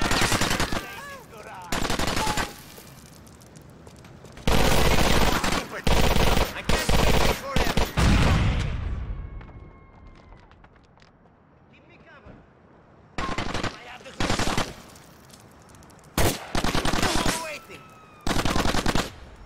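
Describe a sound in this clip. Automatic gunfire rattles in bursts.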